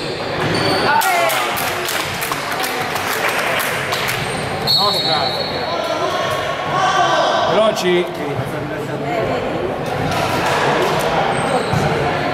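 Spectators talk and cheer from the sidelines.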